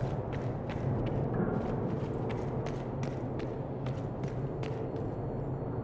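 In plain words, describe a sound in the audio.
Footsteps run quickly across a stone floor.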